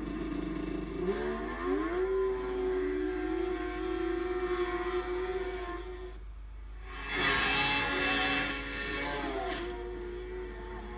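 A snowmobile engine revs up and roars past.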